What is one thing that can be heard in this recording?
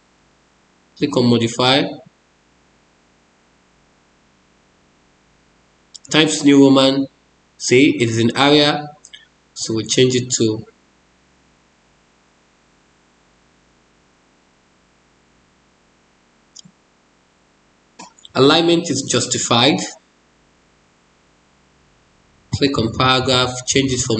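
A man talks calmly in short bursts through a microphone, as if explaining.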